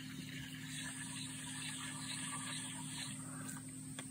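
A fishing reel's handle is cranked, making a soft whirring, ticking sound.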